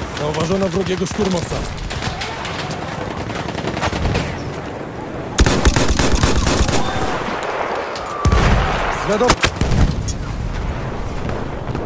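Explosions boom loudly nearby.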